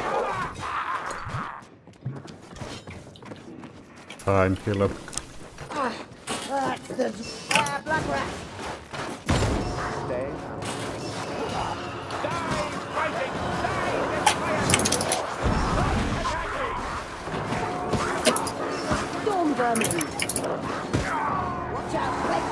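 Blades strike and clash with sharp thuds.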